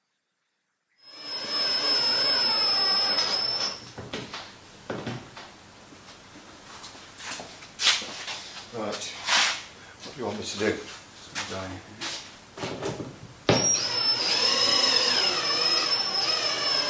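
A cordless drill whirs as it drives screws.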